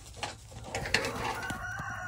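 A bison gallops, its hooves thudding on dirt.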